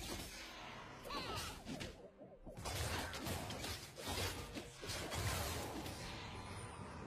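Spell and hit effects burst and clash in a video game fight.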